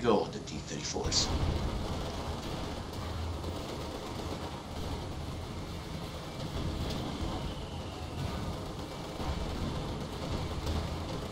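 Tank engines rumble and clank steadily.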